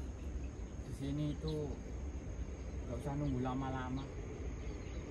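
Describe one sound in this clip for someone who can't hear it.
A man nearby speaks briefly and calmly.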